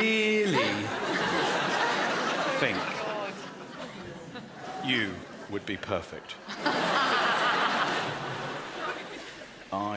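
A woman laughs out loud.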